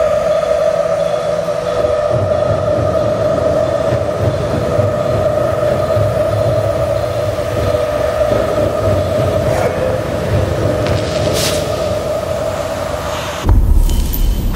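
Water swirls and bubbles around a swimmer underwater.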